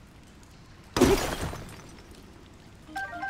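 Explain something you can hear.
A rock shatters with a loud crash.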